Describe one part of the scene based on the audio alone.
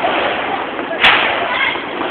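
A firework bangs once nearby.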